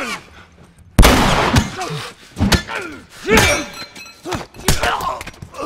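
A man grunts and strains close by while struggling.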